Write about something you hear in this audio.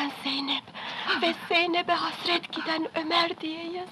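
An elderly man cries out in distress.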